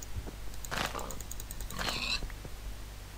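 A pig grunts.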